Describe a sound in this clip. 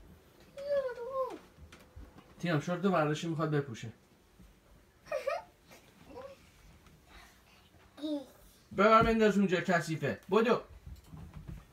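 A toddler girl babbles and squeals nearby.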